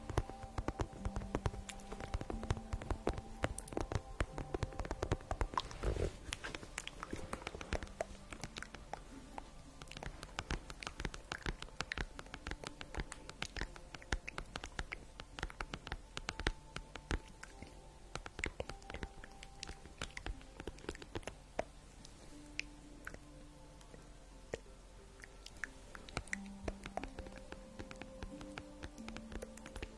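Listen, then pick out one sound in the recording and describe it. Fingernails tap and scratch on plastic close to a microphone.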